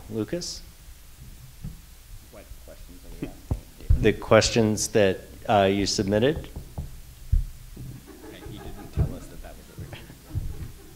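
A man speaks calmly into a microphone in a large echoing room.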